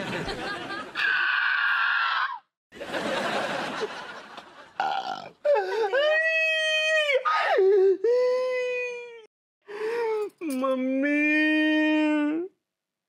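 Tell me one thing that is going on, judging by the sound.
A young man sings loudly in a drawn-out, wailing voice.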